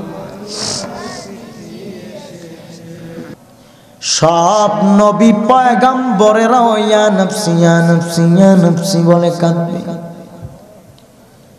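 A young man chants in a melodic, sustained voice through a loudspeaker microphone.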